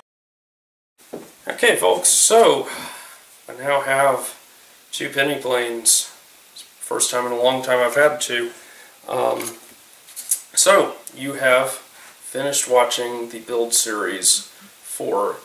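A man talks calmly and close up.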